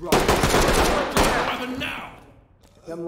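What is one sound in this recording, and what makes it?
A rifle fires a loud burst of gunshots.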